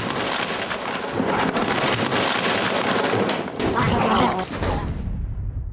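Books tumble and clatter onto the floor.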